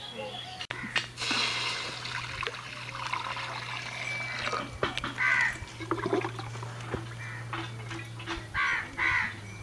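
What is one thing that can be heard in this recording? Water pours into a metal pan.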